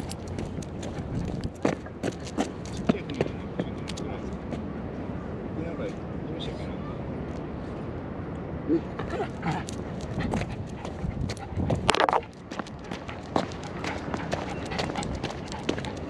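A small dog's paws patter on stone paving.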